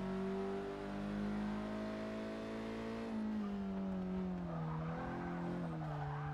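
A car engine drones at high revs, its pitch easing down as the car slows into a bend.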